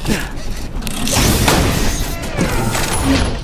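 A heavy metal chest creaks and clanks open.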